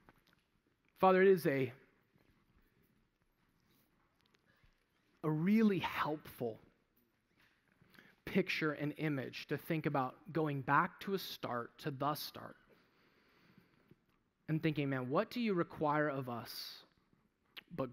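A man speaks into a microphone over loudspeakers in a large echoing hall, in short phrases with pauses.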